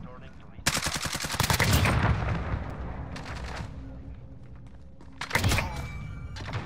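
Gunfire rattles in rapid bursts with sharp cracks.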